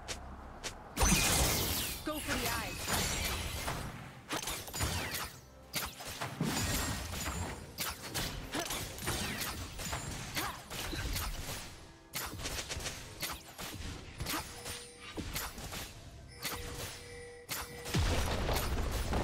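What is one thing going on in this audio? Game spell effects and weapon hits clash in a busy fight.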